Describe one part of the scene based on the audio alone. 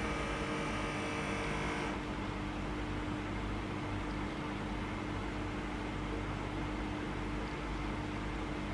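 A small electric pump hums steadily as a blood pressure cuff inflates.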